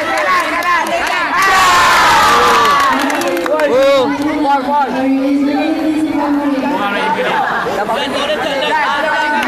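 A crowd of young spectators shouts and cheers loudly in an echoing hall.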